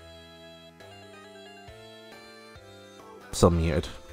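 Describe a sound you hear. A short melody of electronic menu tones plays.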